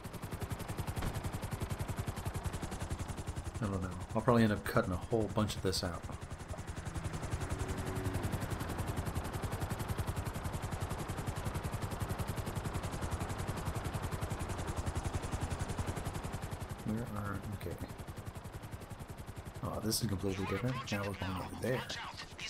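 A helicopter's rotor chops steadily and loudly.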